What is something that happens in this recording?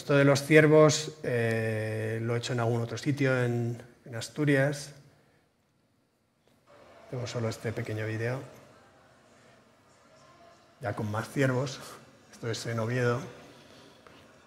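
A middle-aged man speaks calmly through a microphone, in pauses.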